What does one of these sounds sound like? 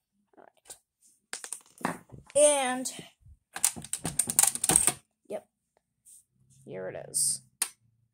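A metal card clicks and rattles as it is pulled from its slot.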